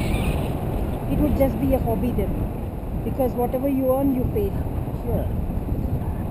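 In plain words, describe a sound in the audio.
A woman speaks briefly, close by.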